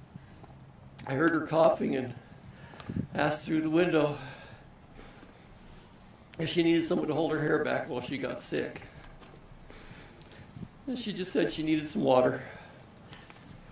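A man speaks calmly and slowly into a microphone, pausing between phrases.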